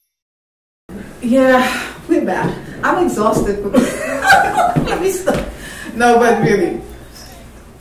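A woman laughs loudly nearby.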